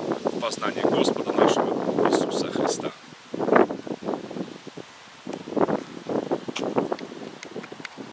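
An elderly man speaks calmly and close by, outdoors.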